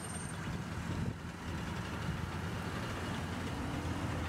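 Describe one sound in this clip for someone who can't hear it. A car engine idles nearby.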